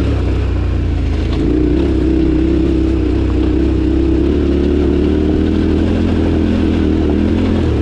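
Tyres crunch and rattle over loose stones.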